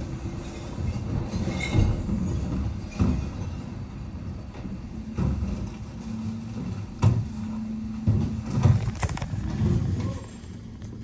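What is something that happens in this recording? Wheelie bins bang and clatter against a bin lorry's lift.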